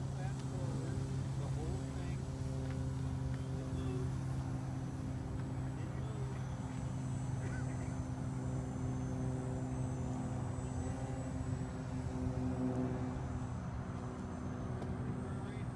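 A small model airplane engine buzzes steadily overhead.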